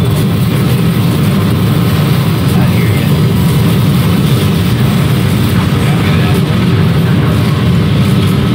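Explosions boom and rumble in a fierce battle.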